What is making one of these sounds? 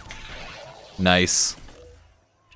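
A sci-fi scanner powers up with a loud electronic whir.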